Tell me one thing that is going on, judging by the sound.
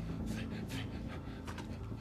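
A middle-aged man groans in pain.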